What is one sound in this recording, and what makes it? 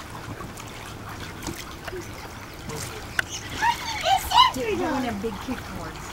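Water splashes lightly as a child kicks.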